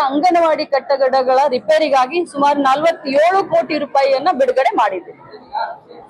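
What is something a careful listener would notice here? A woman speaks firmly and with animation into microphones.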